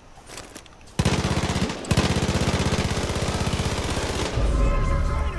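Quick footsteps crunch over dry ground.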